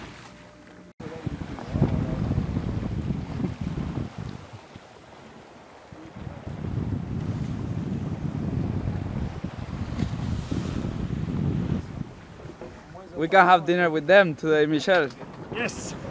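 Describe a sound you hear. Wind blows across the deck of a sailboat.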